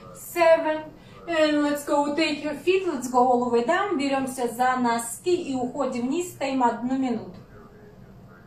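A young woman talks loudly and with animation, close by.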